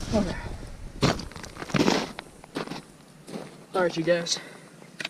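Boots crunch on snow nearby.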